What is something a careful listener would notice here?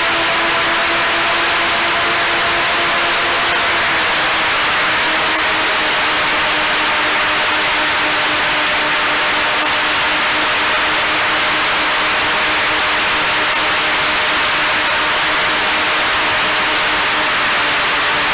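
Drone propellers whine steadily up close.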